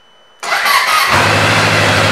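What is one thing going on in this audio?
A motorcycle starter whirs briefly.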